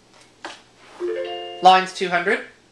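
An electronic game jingle plays through a television speaker.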